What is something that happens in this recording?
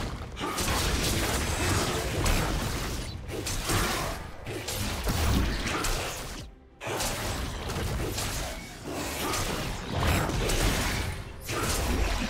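Video game fight effects whoosh, crackle and thud without pause.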